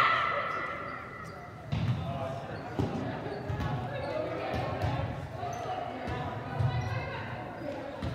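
Young women call out and talk in a large echoing hall.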